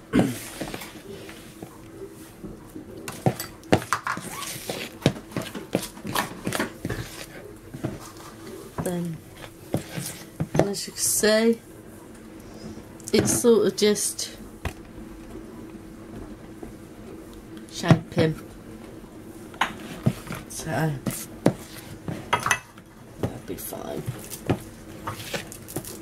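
A thick batter squelches as it is stirred.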